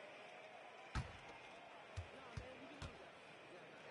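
A basketball bounces on a wooden floor a few times.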